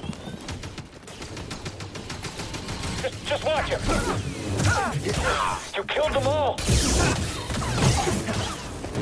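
Blaster bolts deflect off a lightsaber with sharp zaps.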